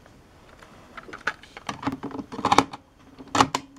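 A cassette clatters into a tape player.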